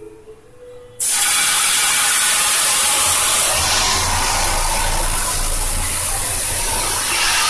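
Hot oil in a pan suddenly bursts into a loud, steady sizzle and roar of flames.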